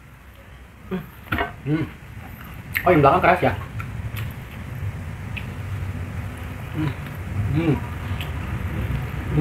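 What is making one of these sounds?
A young man gnaws and chews noisily.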